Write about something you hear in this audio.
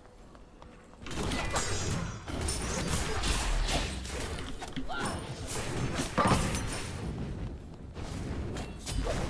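Game combat effects clash and burst in rapid succession.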